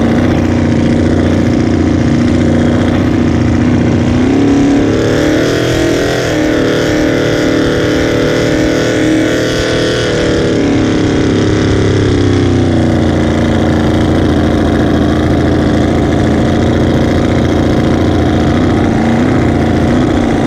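A racing boat engine roars loudly and steadily up close, rising in pitch as it speeds up and then settling lower.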